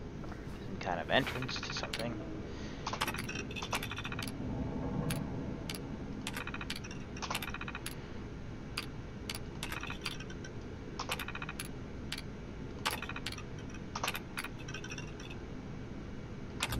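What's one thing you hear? A computer terminal clicks and beeps as its options are chosen.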